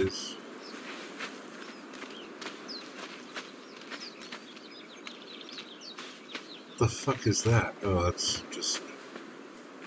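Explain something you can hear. Footsteps crunch softly on sand.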